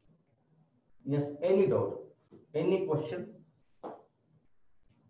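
A man speaks calmly, as if teaching.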